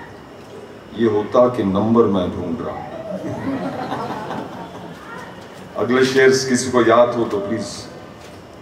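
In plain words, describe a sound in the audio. An elderly man speaks into a microphone, reading out with expression.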